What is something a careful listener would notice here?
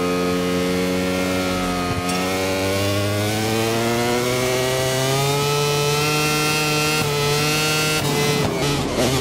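A motorcycle engine roars at high revs, rising and falling in pitch as it shifts gears.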